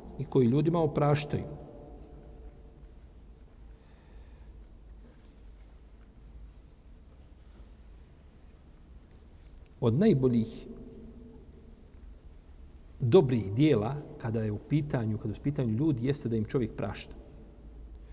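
An elderly man speaks calmly into a close microphone, with long pauses.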